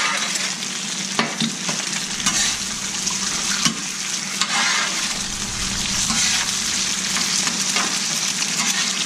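A metal spatula scrapes and clicks against a griddle.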